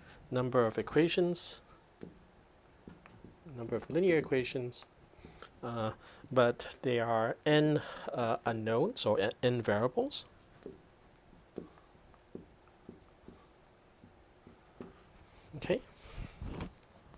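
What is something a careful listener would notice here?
A man speaks calmly and steadily, close by, as if explaining.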